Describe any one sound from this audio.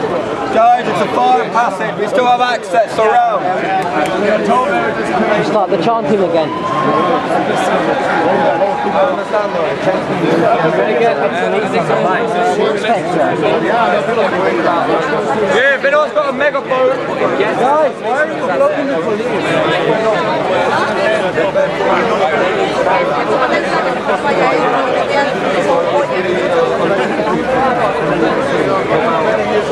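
A dense crowd of men and women talks and shouts loudly close by, outdoors.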